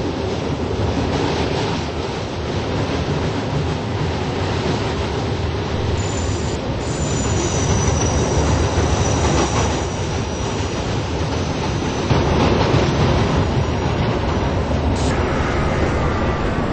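A subway train rumbles and rattles along the tracks.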